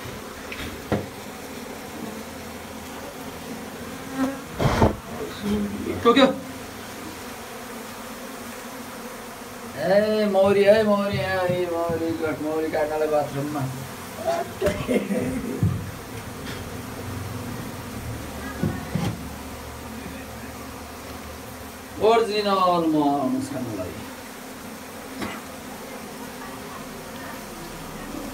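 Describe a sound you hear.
Bees buzz steadily.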